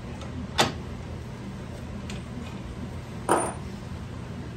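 Metal parts of a machine clunk sharply close by.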